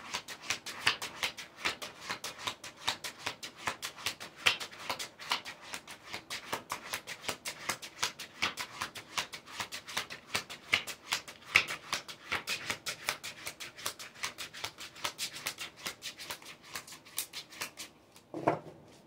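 Playing cards shuffle with rapid soft flicks close by.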